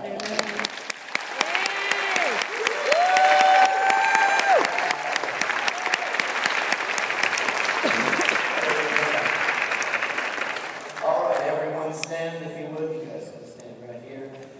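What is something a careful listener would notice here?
Many men and women talk and call out together in a large echoing hall.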